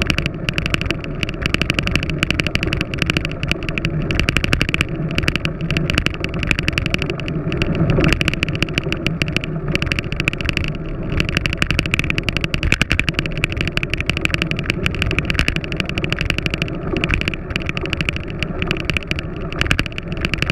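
Road bicycle tyres roll on a paved path.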